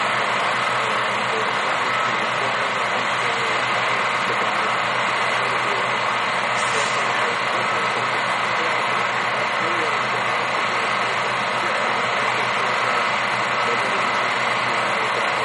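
A loader's diesel engine rumbles steadily nearby.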